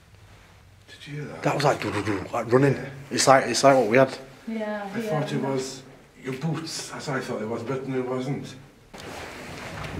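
An elderly man speaks with animation close by, in an echoing vault.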